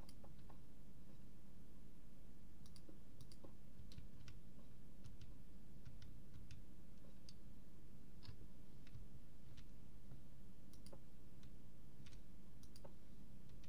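Stone blocks crack and crumble as they are dug out, with short tapping clicks.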